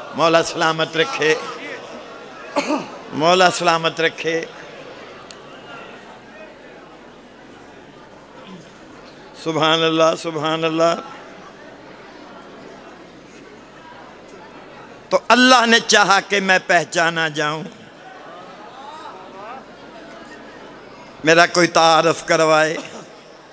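An elderly man recites in a melodic chanting voice through a loudspeaker, in short bursts with pauses.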